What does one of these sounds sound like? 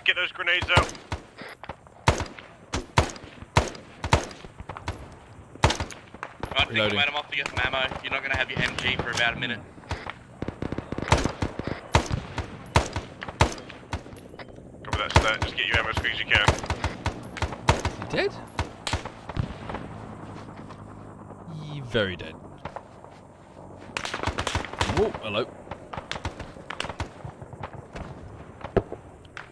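Rifle shots crack sharply again and again.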